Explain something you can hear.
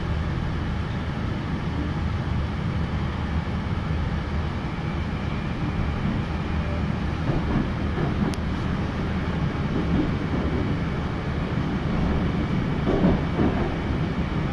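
A subway train rumbles steadily while moving.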